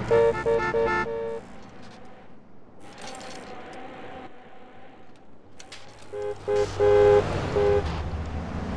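Bicycle tyres roll steadily over pavement.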